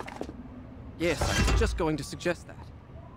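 Blows thud in a short scuffle.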